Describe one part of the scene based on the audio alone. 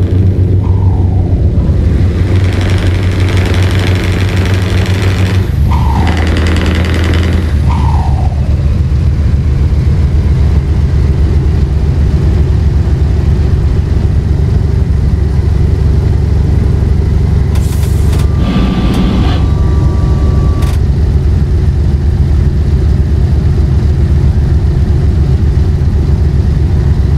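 Tyres roll and hum on the road surface.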